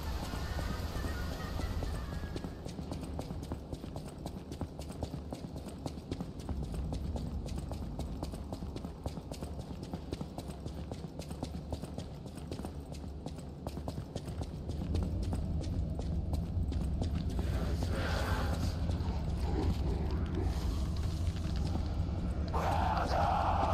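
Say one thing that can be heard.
Quick footsteps run on a stone floor.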